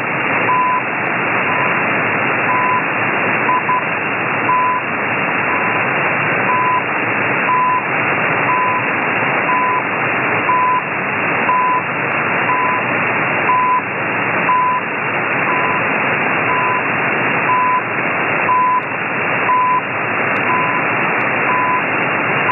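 A radio receiver gives out short, pitched beeps about once a second.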